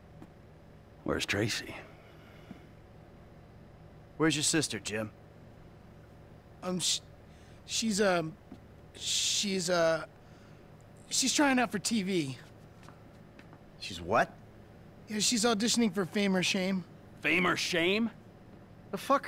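A man asks questions in a puzzled voice.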